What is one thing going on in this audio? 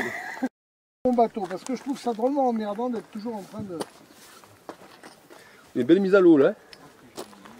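An older man talks with animation, close by.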